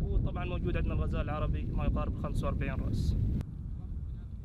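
A young man speaks calmly, close to a microphone.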